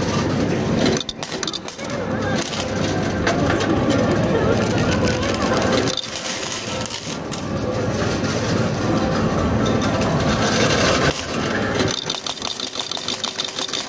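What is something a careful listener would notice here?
A coin pusher's shelf slides back and forth with a low mechanical hum.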